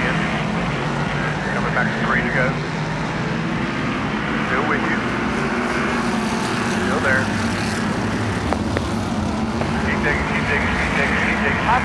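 A large crowd cheers and murmurs outdoors.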